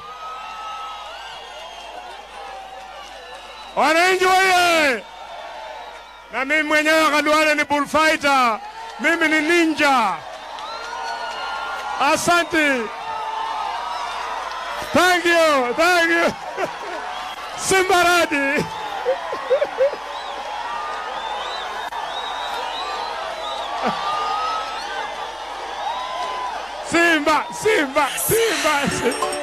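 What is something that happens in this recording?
A large crowd cheers and roars outdoors.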